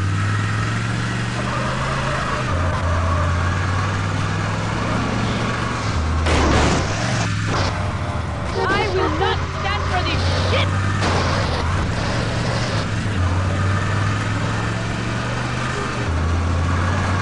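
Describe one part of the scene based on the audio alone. A car engine drones steadily, rising and falling in pitch as it revs.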